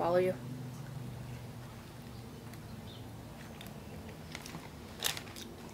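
A young woman chews food with soft, wet mouth sounds.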